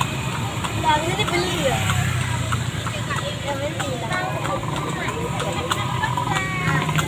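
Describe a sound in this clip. A young boy talks and laughs close by.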